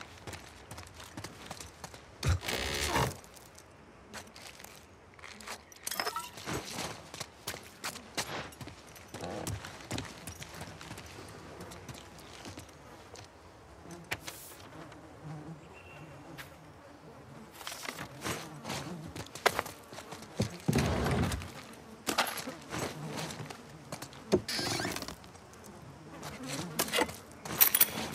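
Footsteps creak and shuffle across a wooden floor.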